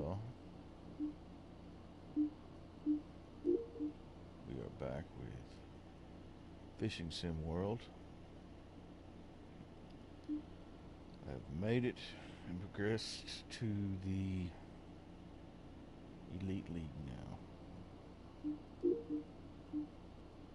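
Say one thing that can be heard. Short electronic menu blips sound now and then.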